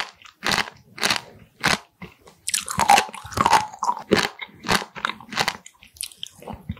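A woman chews noisily and wetly close to a microphone.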